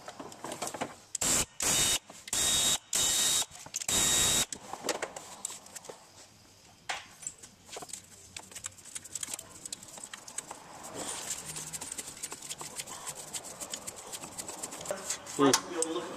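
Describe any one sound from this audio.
Fingers brush and tap against metal engine parts, close by.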